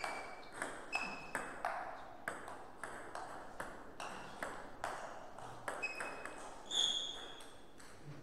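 Sneakers squeak sharply on the floor.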